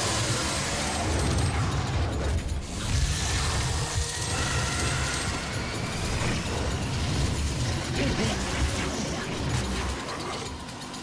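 A chainsaw engine roars and rattles steadily.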